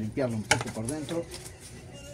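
A plastic part rattles as it is handled.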